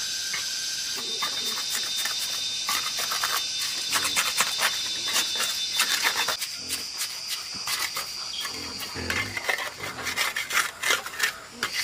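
A trowel scrapes and taps wet cement mortar against concrete blocks.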